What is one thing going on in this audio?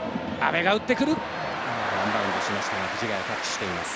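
A stadium crowd roars loudly at a shot on goal.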